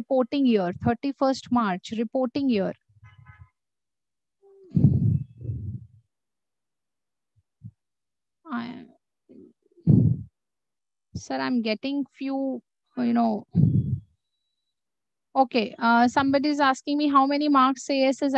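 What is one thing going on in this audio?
A young woman explains calmly, heard through an online call with pauses.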